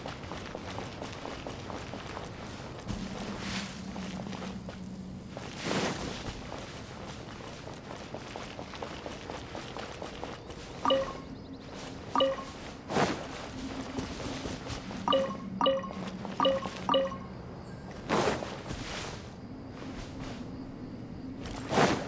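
Footsteps patter quickly across sand and stone.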